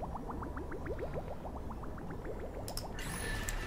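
Quick rising electronic blips chirp one after another in a game.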